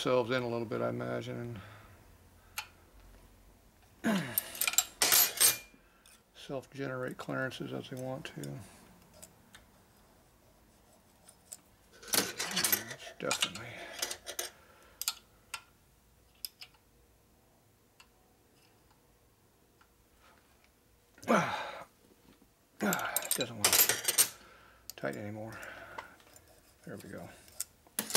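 Metal parts click and tap lightly.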